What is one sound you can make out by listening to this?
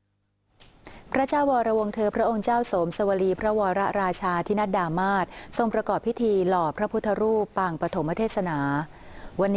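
A woman reads out the news clearly and steadily into a close microphone.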